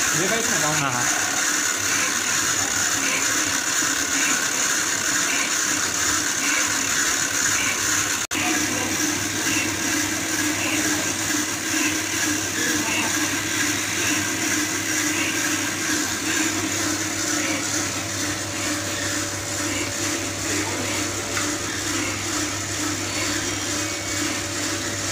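A machine whirs and rattles steadily.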